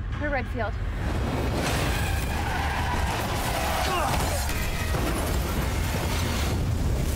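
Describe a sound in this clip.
A car crashes with a loud roaring rush of noise.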